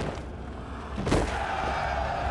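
A heavy body thuds onto sand.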